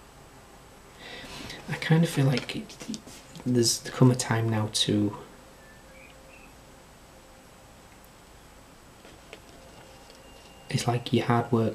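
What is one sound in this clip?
A man speaks calmly and close to the microphone, in short bursts with pauses.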